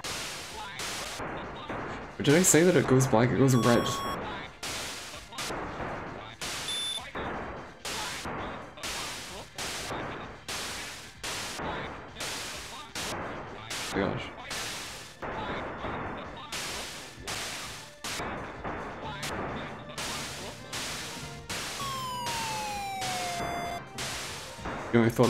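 Retro console video game laser shots fire in quick bursts.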